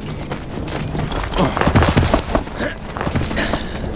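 A heavy boot kick lands with a thud.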